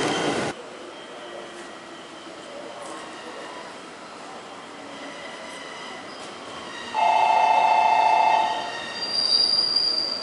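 A train pulls slowly into a station.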